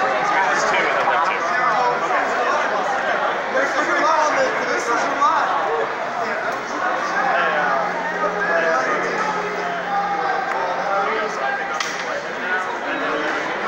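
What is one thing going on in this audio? A crowd of men and women chatter loudly all around in a large echoing hall.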